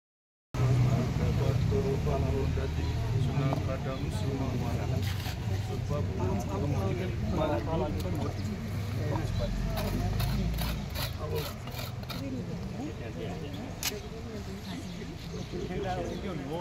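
A crowd of men and women murmurs and talks nearby outdoors.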